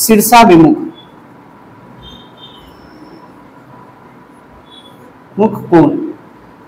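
A marker squeaks faintly on a whiteboard.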